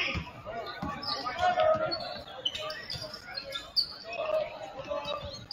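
A basketball thumps as it is dribbled on the floor.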